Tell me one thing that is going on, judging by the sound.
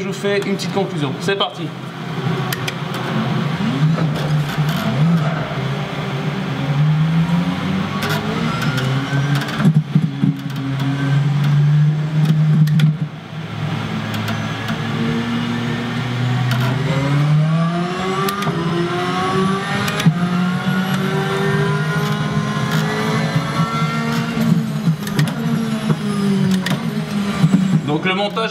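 A racing car engine roars loudly, revving up and dropping with each gear change.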